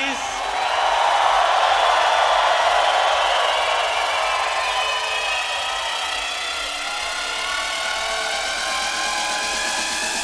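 Electronic music plays loudly through a large outdoor sound system.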